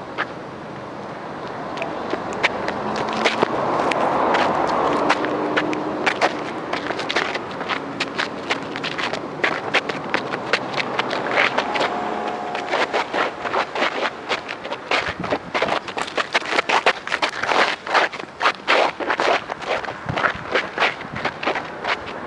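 Shoes scuff and tap on loose gravel.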